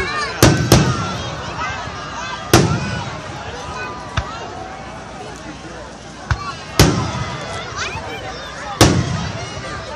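Fireworks burst with loud booming bangs that echo away.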